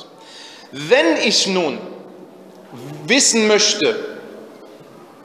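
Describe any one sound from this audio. A man chants in a drawn-out, melodic voice with a light echo.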